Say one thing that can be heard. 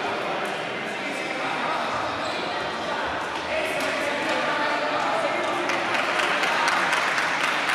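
Shoes squeak and thump on a hard floor.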